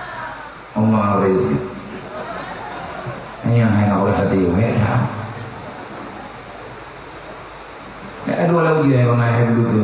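A man speaks with animation into a microphone, amplified through loudspeakers in an echoing hall.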